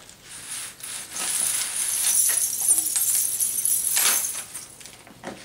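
Small metal coins jingle and rattle.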